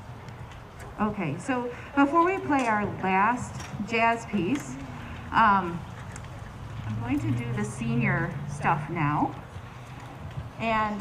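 A woman speaks calmly into a microphone over a loudspeaker outdoors.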